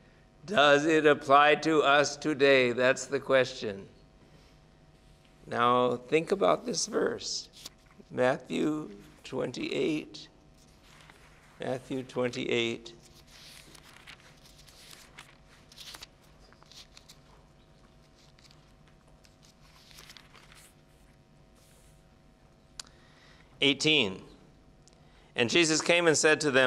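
An older man speaks calmly into a microphone, in bursts with pauses.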